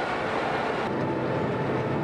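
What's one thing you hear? Potatoes tumble and knock against a metal mesh.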